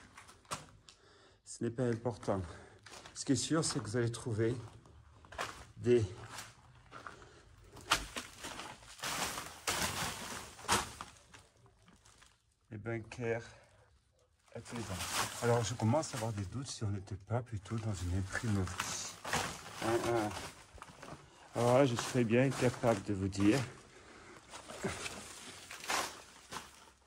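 Footsteps crunch over rubble and loose paper.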